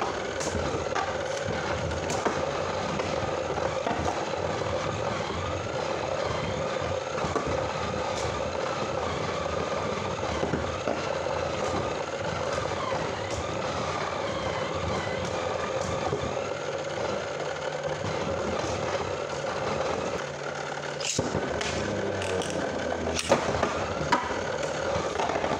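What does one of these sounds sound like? Spinning tops clash with sharp clicks.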